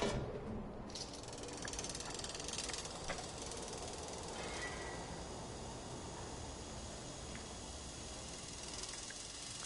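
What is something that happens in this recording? A hanging bucket slides along a cable with a steady rushing hiss.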